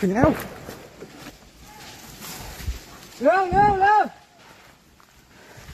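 A man walks through undergrowth, leaves rustling underfoot.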